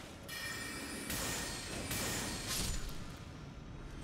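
A spell bursts with a rushing hiss.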